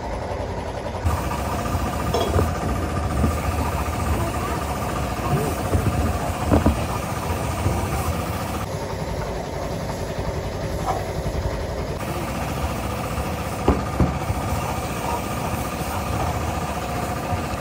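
A spray gun hisses steadily as it sprays paint.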